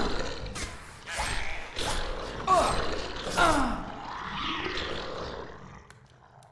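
Magic spells burst and crackle with loud whooshes.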